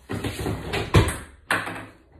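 A stick knocks against a block.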